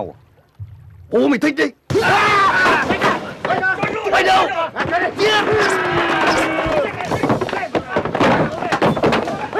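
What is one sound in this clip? Men shout and struggle in a scuffle.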